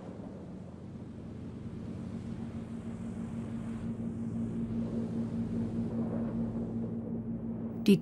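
An aircraft engine drones steadily.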